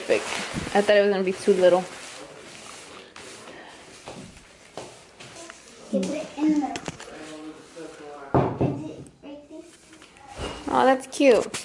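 A plastic tablecloth rustles as it is spread out.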